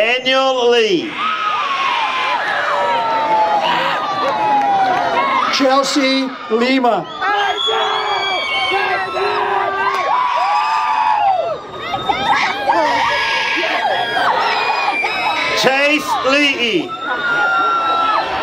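A crowd cheers, shouts and whistles loudly.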